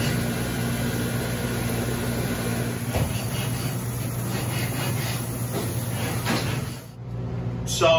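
A hose sprays water with a steady hiss.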